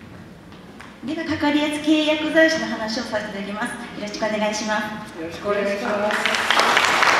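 A woman speaks calmly through a microphone in a large echoing hall.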